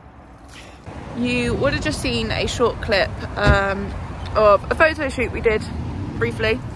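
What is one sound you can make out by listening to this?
A young woman talks animatedly close to the microphone.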